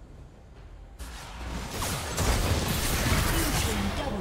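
Spell effects burst and blows land in a noisy fight.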